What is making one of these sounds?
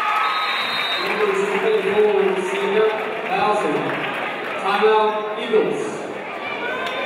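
A group of young women chant and cheer in unison.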